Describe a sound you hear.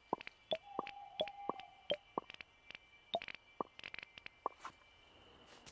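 Menu clicks and soft chimes tick quickly in a game.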